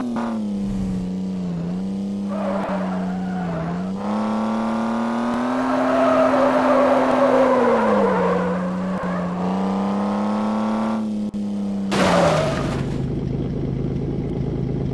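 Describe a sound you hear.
A car engine hums steadily, rising and falling in pitch.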